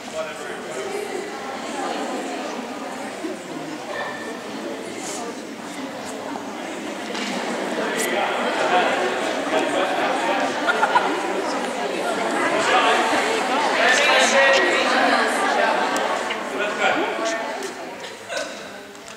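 A large crowd of young women chatters and cheers in a big echoing hall.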